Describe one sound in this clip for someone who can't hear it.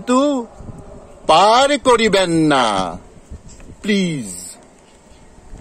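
A middle-aged man sings loudly and close by, in long drawn-out notes.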